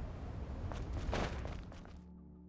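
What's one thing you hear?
A sharp whoosh sweeps past.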